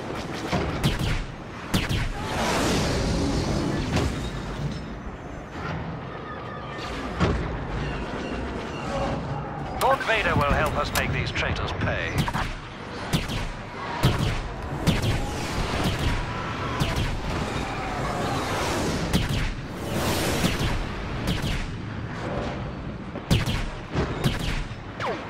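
Blaster shots crack and zap in quick bursts.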